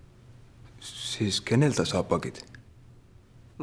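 A young man asks a puzzled question up close.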